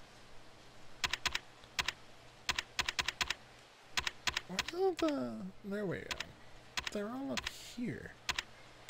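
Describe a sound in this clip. Short electronic menu ticks sound in quick bursts.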